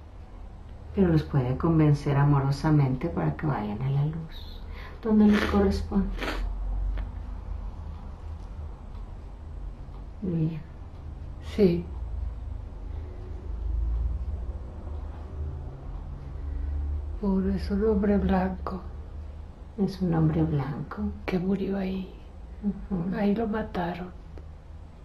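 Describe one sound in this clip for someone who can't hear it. A woman speaks softly in halting phrases, close by.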